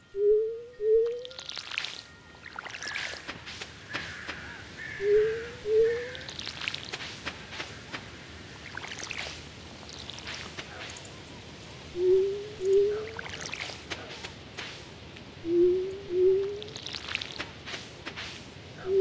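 Quick footsteps patter across soft ground.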